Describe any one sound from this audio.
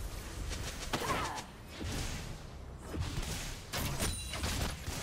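Video game spells crackle and burst in a fast fight.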